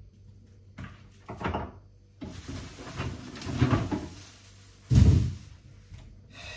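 A woman handles dishes on a counter with light knocks and rustles.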